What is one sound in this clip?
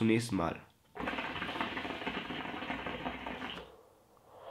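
Water bubbles and gurgles in a hookah.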